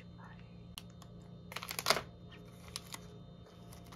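A plastic wrapper crinkles up close.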